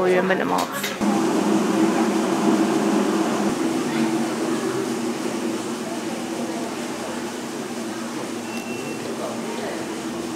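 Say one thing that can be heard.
Cable car machinery hums steadily.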